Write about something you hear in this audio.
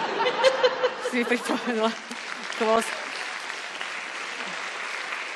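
A woman laughs loudly.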